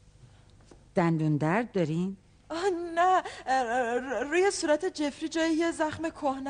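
An elderly woman speaks loudly and emotionally, close by.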